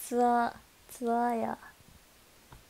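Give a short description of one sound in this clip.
A young woman speaks brightly into a microphone close by, in two short drawn-out calls.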